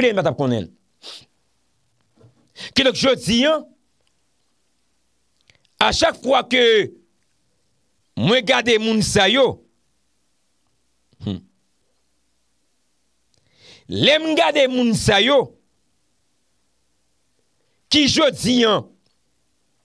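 A young man speaks with animation into a close microphone, in short bursts with pauses.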